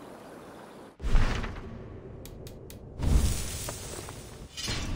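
A deep whoosh sounds as a menu opens.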